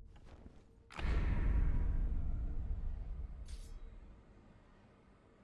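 A magical whoosh swells up and slowly fades.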